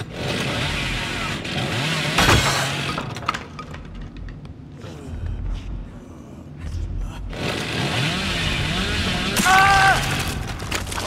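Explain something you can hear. A chainsaw engine revs loudly and roars.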